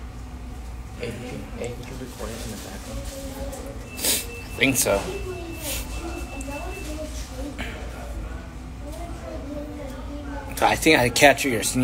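A young man speaks casually and close by.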